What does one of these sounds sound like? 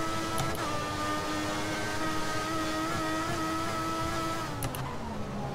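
Gear shifts click sharply.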